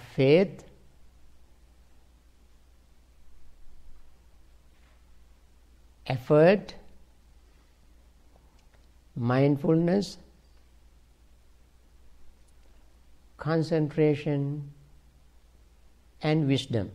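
An elderly man speaks calmly in short phrases, with long pauses between them.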